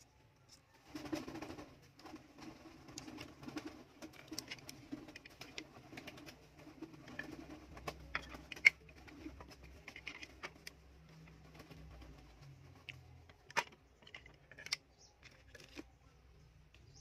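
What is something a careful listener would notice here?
Plastic parts scrape and slide against each other.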